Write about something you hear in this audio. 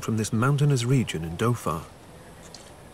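An elderly man speaks calmly up close.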